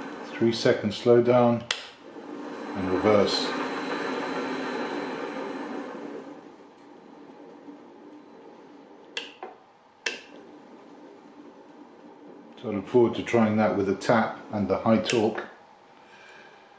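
A dial on a machine clicks as it is turned.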